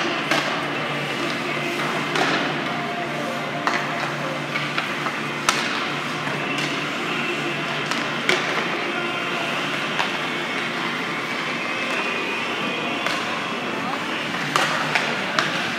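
Hockey sticks clack against a puck, echoing in a large hall.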